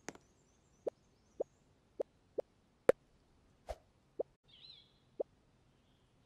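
Soft menu clicks tick one by one.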